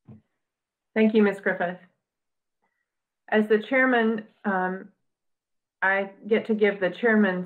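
A woman speaks calmly over an online call, with pauses.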